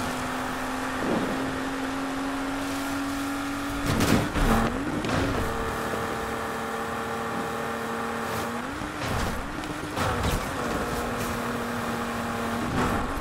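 A car engine hums steadily and changes pitch with gear shifts.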